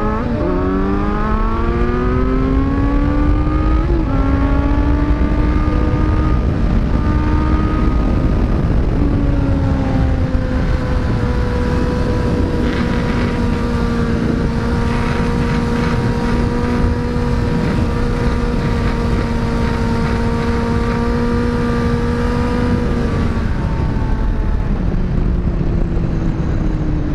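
A motorcycle engine revs up through the gears and then hums steadily.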